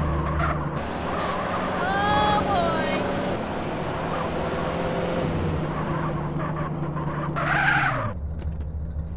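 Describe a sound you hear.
A car engine hums as a car drives along a street.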